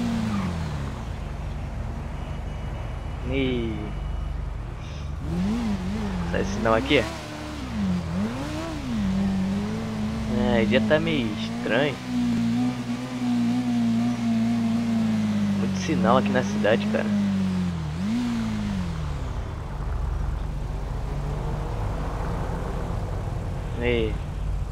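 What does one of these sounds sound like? A small scooter engine hums steadily, revving up and down.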